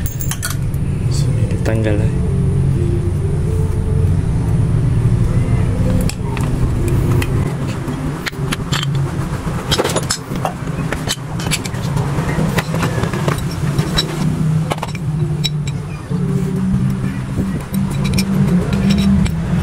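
Metal parts clink and click as they are handled.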